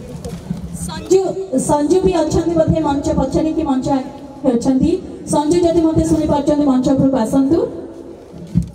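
A woman speaks with animation into a microphone, heard over loudspeakers.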